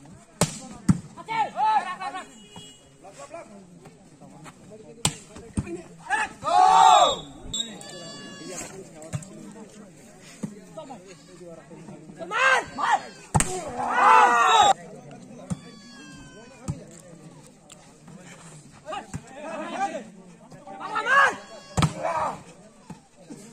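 Young men shout loudly outdoors during a game.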